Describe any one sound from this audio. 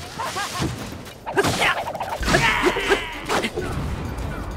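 A fiery explosion bursts with a roar.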